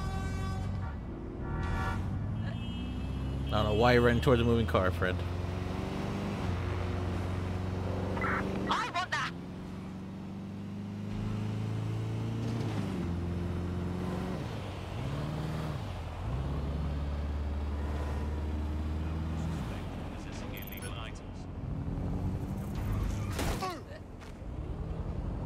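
A van engine drones and revs up and down as it drives.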